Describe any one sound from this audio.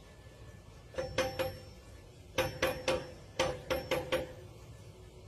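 A small dog scratches and rattles a door handle.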